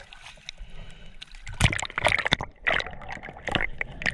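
Water splashes as something plunges in.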